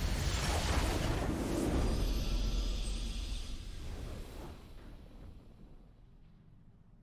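A triumphant game fanfare swells loudly, then slowly fades away.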